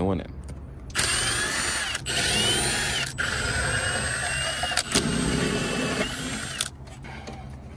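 A cordless power drill whirs in short bursts.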